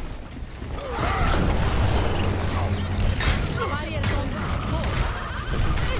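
Explosions and gunfire crackle close by.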